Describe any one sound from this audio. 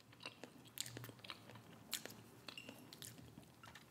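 Sauce squirts wetly from a bottle into a cup.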